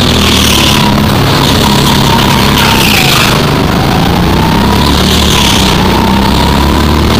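A go-kart engine drones at full throttle.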